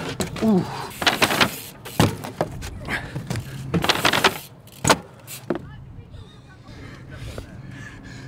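Bike tyres thud onto a wooden bench.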